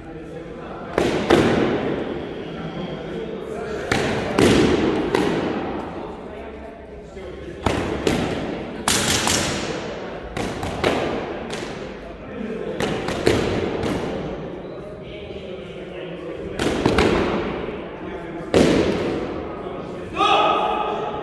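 Padded weapons thud sharply against shields in a large echoing hall.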